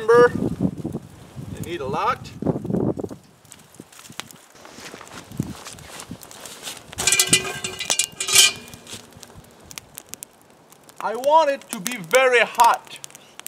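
A man speaks calmly outdoors.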